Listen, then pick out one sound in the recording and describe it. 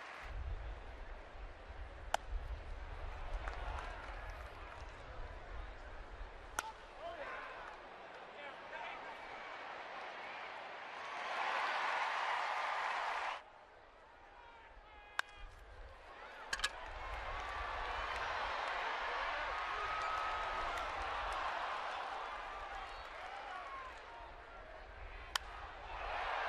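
A crowd of spectators cheers and murmurs in a large open stadium.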